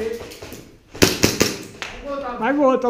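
An airsoft gun fires a quick burst of shots.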